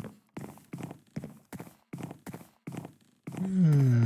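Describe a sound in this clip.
Footsteps tap steadily across a wooden floor.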